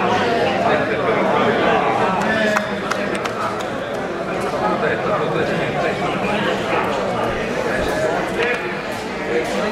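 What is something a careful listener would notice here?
A crowd of spectators chatters in a large echoing hall.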